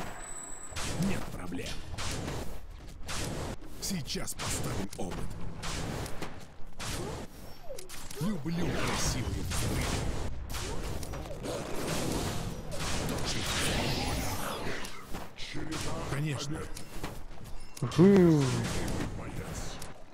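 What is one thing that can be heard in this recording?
Spell blasts and clashing weapons ring out in a fast-paced battle.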